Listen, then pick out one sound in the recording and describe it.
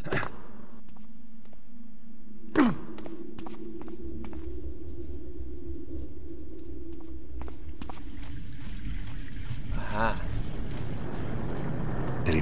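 Footsteps scuff across a stone floor.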